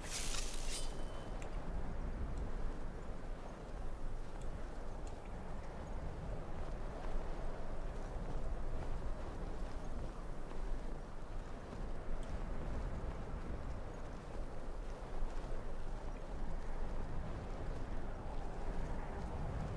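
Wind blows steadily over snow.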